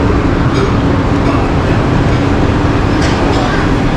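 A monorail train rolls along an elevated track.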